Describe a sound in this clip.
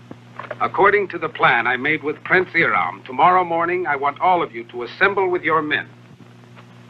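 A man speaks firmly in a film voice.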